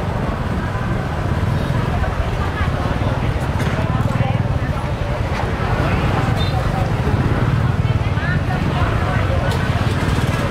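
A busy outdoor market murmurs.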